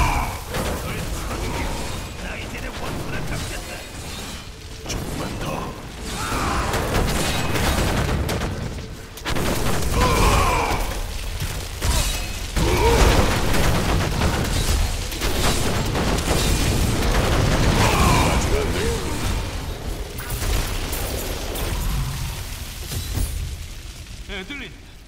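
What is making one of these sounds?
Magic blasts and fiery explosions crackle and boom in quick bursts.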